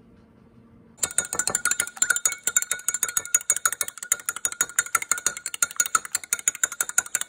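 A fork whisks eggs rapidly in a glass cup, clinking.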